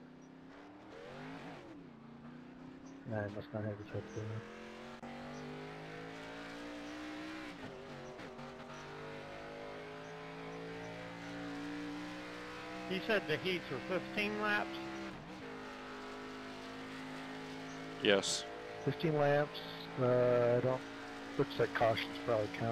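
A race car engine roars steadily, its pitch slowly rising and falling.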